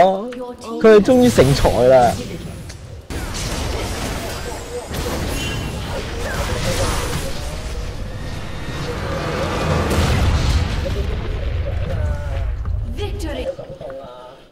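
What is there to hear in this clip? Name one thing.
Game spells crackle and whoosh in a fast battle.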